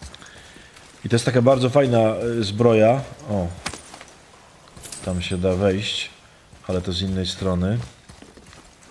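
A man talks with animation into a microphone, close up.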